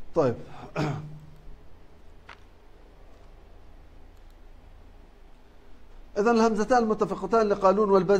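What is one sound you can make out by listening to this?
A man speaks calmly and clearly into a clip-on microphone, pausing between phrases.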